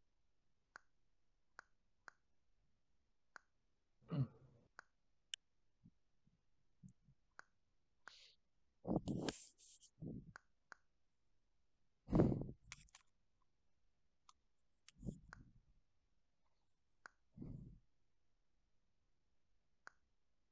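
Short soft clicks sound now and then as menu buttons are touched.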